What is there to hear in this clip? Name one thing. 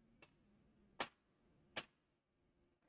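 Plastic parts click softly as they are handled.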